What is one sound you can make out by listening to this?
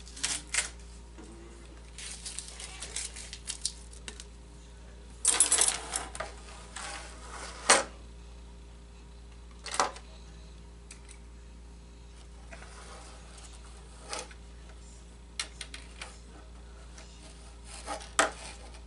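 A light plastic model rustles and taps.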